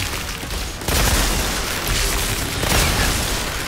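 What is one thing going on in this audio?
An electric beam crackles and hisses.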